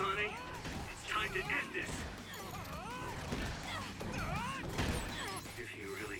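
A magical energy blast bursts with a whoosh.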